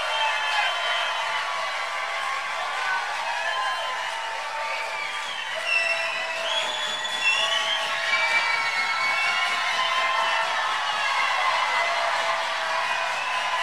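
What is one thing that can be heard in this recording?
A large crowd cheers and shouts loudly.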